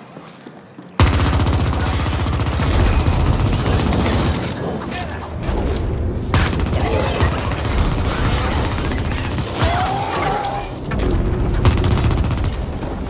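Rapid gunfire rattles and blasts.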